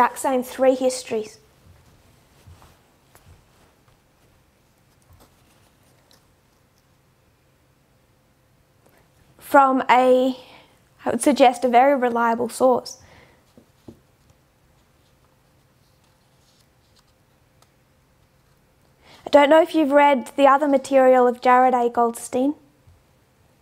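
A young woman speaks calmly and close by, in short bursts with long pauses.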